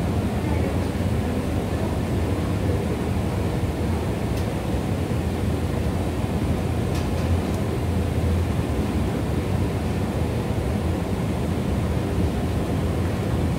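An escalator hums and rumbles steadily in a large echoing space.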